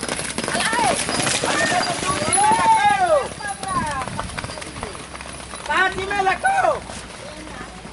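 Horses gallop through shallow water, splashing loudly.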